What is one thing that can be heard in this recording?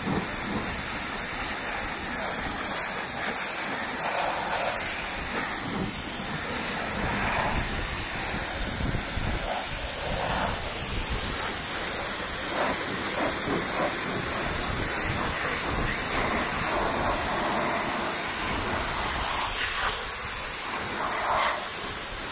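Water spatters against a car's body and the ground.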